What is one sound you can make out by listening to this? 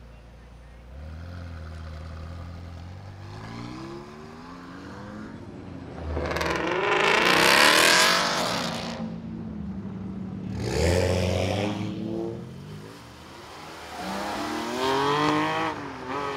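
A sports car engine revs loudly and roars as the car pulls away.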